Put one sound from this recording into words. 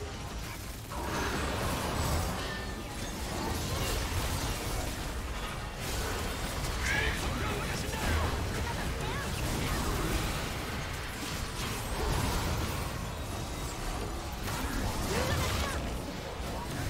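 Magic blasts crackle and boom in a fast, busy fight.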